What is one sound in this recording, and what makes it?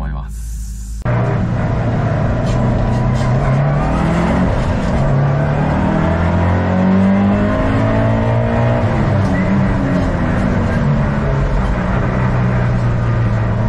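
A turbocharged flat-four car engine accelerates and shifts gears on a track, heard from inside the car.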